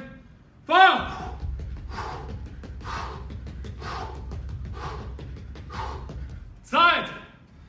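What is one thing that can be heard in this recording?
Feet thump rhythmically on a mat as a man skips in place.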